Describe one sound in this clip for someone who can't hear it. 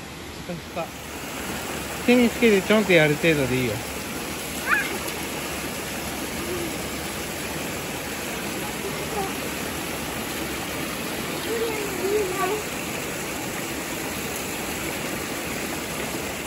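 Water pours from a spout and splashes onto a grate.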